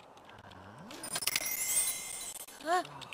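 A bright game chime rings.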